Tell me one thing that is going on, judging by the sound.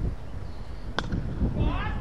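A bat knocks a ball with a sharp crack.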